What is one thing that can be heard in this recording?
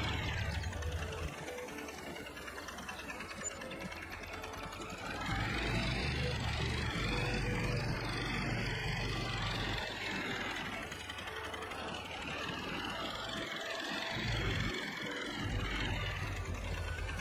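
A small utility vehicle's engine hums and revs as it drives.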